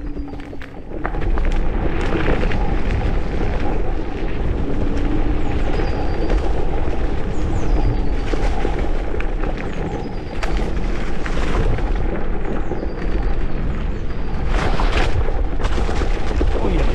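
Wind rumbles against the rider.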